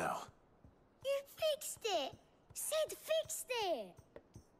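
A girl exclaims with excitement, close by.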